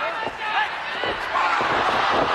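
A knee strikes a body with a thud.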